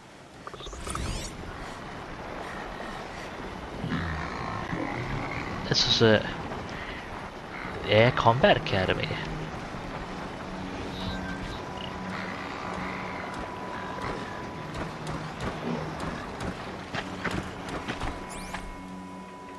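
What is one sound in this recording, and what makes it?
A holographic display hums and crackles with glitchy electronic tones.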